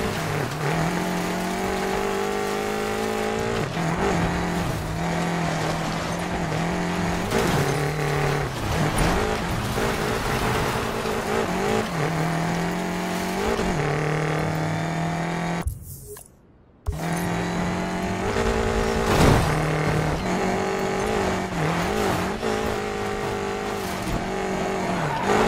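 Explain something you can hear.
A sports car engine roars at high revs, shifting gears.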